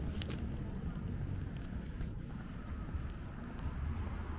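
A jogger's footsteps patter on pavement nearby.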